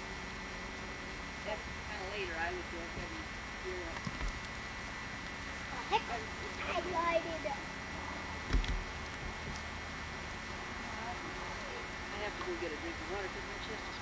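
A horse's hooves thud softly on grass as it walks.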